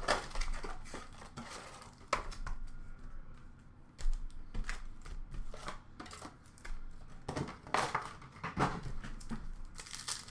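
Cardboard boxes and card packs rustle and tap as hands handle them.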